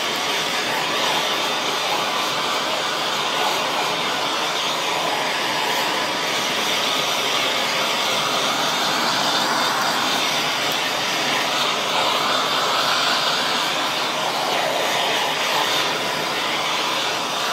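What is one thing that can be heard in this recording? A blowtorch roars steadily.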